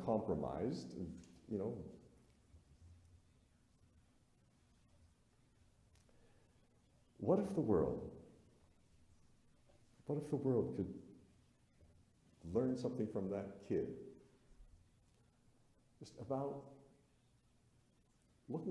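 A middle-aged man speaks with animation through a microphone, pausing often.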